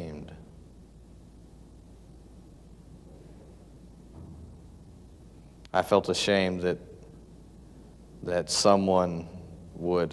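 A young man speaks calmly and slowly, close by, with long pauses.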